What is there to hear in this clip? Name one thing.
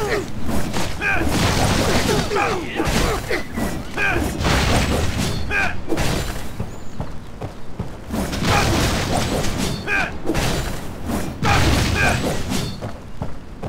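Explosions burst with loud booms.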